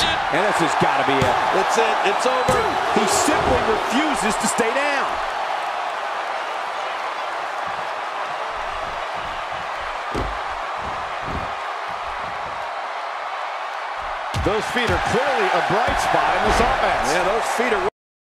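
A large crowd cheers and murmurs steadily in a big echoing arena.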